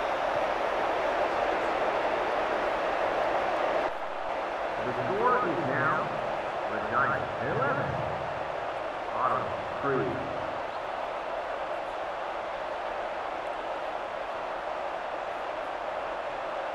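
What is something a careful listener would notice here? A stadium crowd murmurs and cheers in a steady roar.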